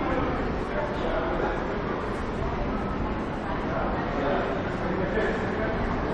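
People chatter indistinctly in the background of an echoing passage.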